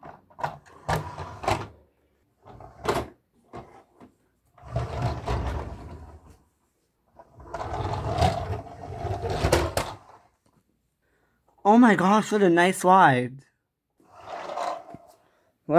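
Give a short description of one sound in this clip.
Plastic toys clatter and scrape as a hand moves them about.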